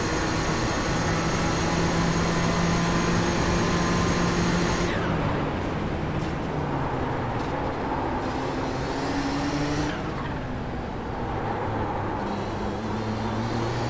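A racing car engine roars at high revs, dropping in pitch as it shifts gears.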